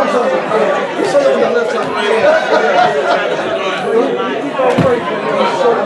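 Many men and women chat at once in a large echoing hall.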